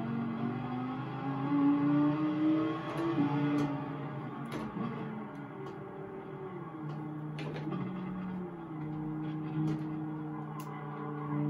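A racing car engine roars and changes pitch as it shifts gears.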